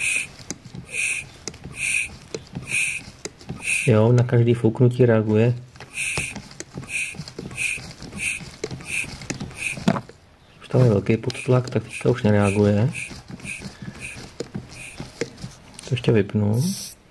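An engine idles nearby with a steady, regular ticking.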